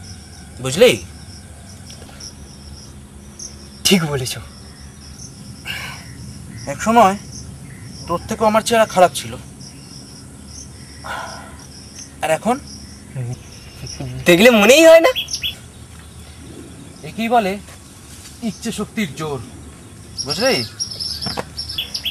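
A young man speaks nearby in short bursts.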